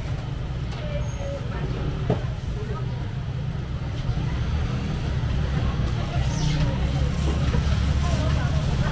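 Distant voices of a crowd murmur.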